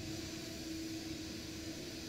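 A helicopter's rotor whirs nearby.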